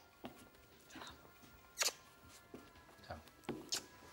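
A man laughs warmly.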